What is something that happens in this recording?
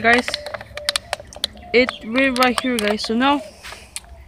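A plastic bottle crinkles in a hand.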